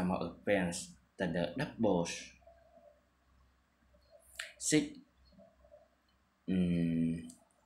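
A man speaks calmly close to the microphone, in short bursts with pauses.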